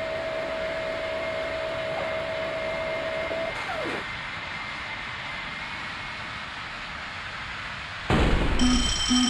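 Jet engines roar steadily as an airliner rolls at speed.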